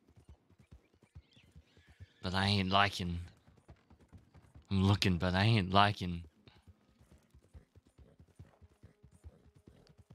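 A horse's hooves clop steadily on a dirt track.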